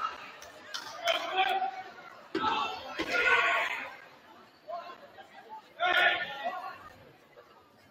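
Young women players call out to one another in an echoing gym.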